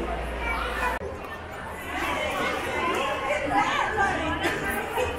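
Young girls talk and laugh close by.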